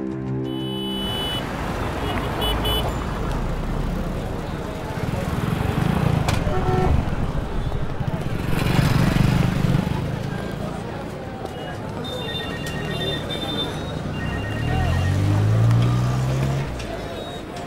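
A crowd bustles and chatters in a busy street.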